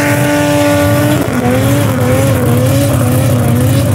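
Tyres screech as they spin.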